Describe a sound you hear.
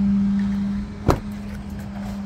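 A car door latch clicks open.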